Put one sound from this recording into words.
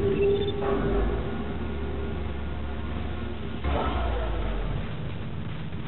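An elevator hums low as it moves.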